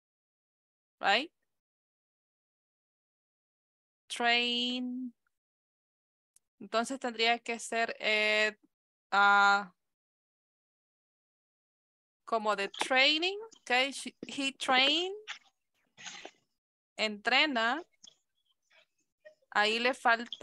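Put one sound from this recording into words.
A young woman speaks slowly and clearly over an online call, with pauses between phrases.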